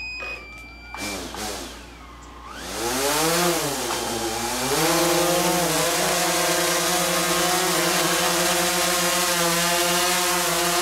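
A drone's propellers whir loudly, spinning up and then humming steadily as it hovers.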